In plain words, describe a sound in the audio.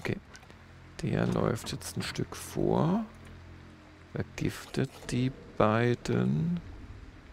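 A middle-aged man talks calmly into a close microphone.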